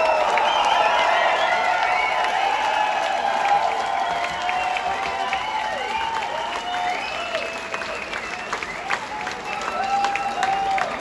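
Members of a crowd whistle shrilly.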